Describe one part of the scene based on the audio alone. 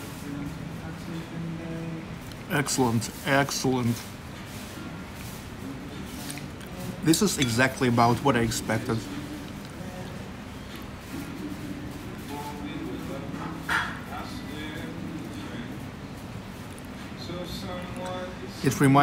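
A fork and knife scrape and clink against a ceramic bowl.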